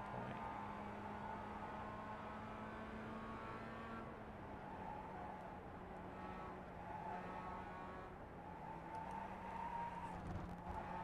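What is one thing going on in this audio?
A racing car engine drones steadily, its pitch shifting as the car changes gear.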